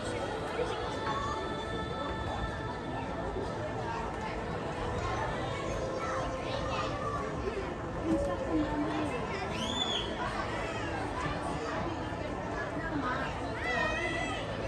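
Footsteps tap on a wooden boardwalk outdoors.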